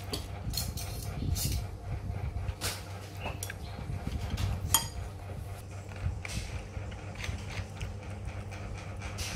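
Metal spoons clink and scrape against a ceramic bowl.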